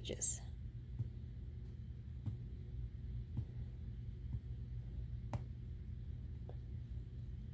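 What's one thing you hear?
A finger taps lightly on a touchscreen.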